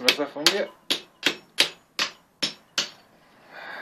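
A hammer strikes a chisel with sharp, ringing knocks.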